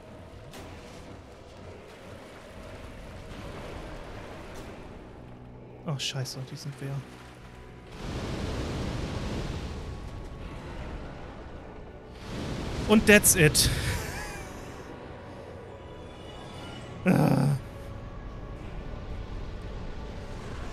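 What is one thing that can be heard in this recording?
A young man talks into a microphone with animation.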